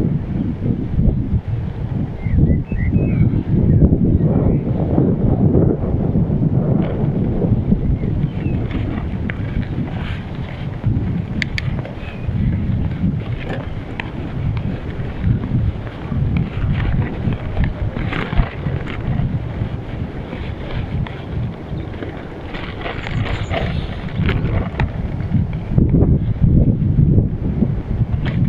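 Wind buffets the microphone steadily throughout.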